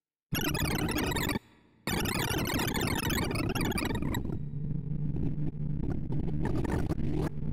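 Rapid electronic beeps chatter in a dense, fast stream of changing pitches.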